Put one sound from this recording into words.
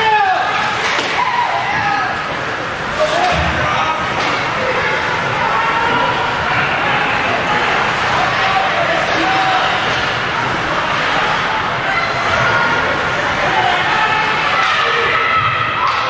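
A crowd of spectators cheers and shouts in a large echoing arena.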